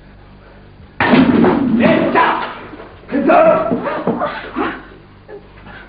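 A man shouts loudly and angrily nearby.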